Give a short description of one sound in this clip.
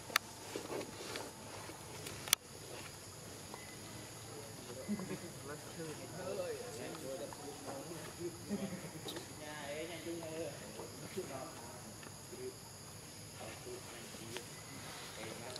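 Leaves and branches rustle as monkeys move in a tree.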